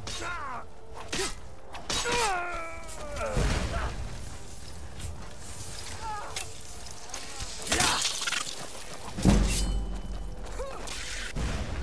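Heavy footsteps crunch on stone.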